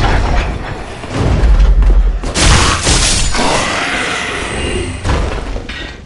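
Armoured footsteps clank on stone.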